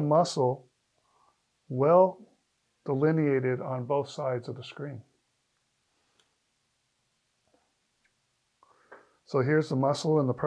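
A middle-aged man speaks calmly and clearly close by, with pauses.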